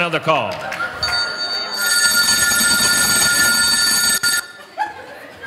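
A telephone rings with a steady electronic tone.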